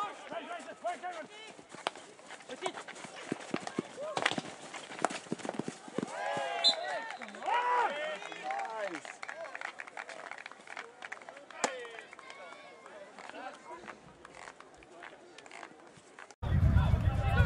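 Hockey sticks strike a ball with sharp clacks.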